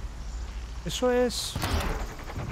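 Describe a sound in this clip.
An arrow thuds into a machine with a sharp crack.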